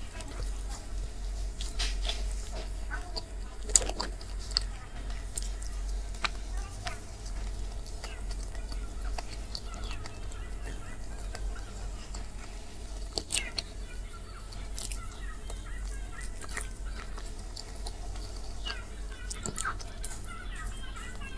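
A plastic fork scrapes and taps against a plastic container.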